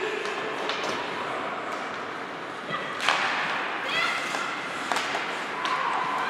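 Ice skates scrape and hiss on the ice.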